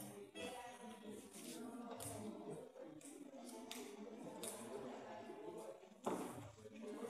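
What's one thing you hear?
A young woman sings into a microphone in a large echoing hall.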